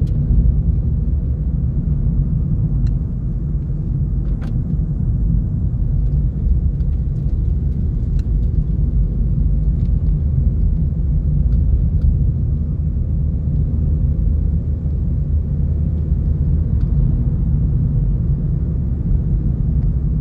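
Road noise rumbles inside a car driving on a paved road.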